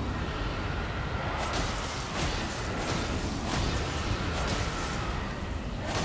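A sword slashes and strikes flesh.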